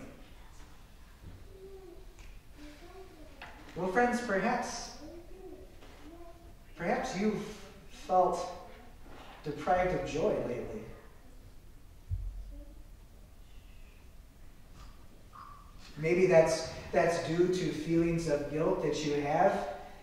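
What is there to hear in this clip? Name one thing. A man speaks calmly into a microphone in a room with some echo, with pauses between phrases.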